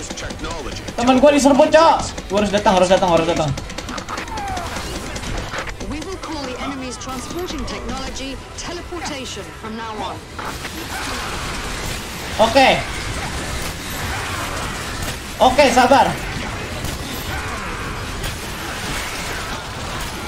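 Gunfire and explosions rattle from a video game.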